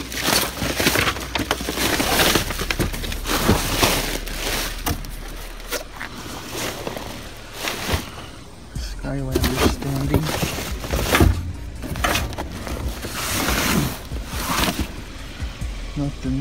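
Cardboard boxes scrape and thump as they are moved.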